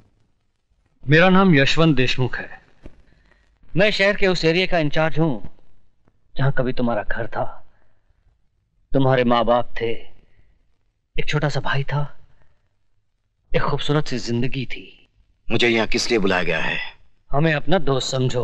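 A middle-aged man speaks firmly and close by, in short bursts.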